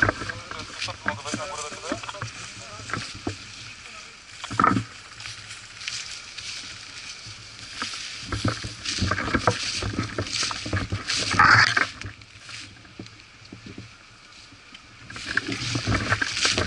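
Footsteps crunch through dry leaves and grass.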